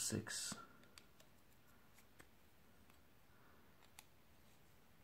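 A hex key clicks faintly against a metal part.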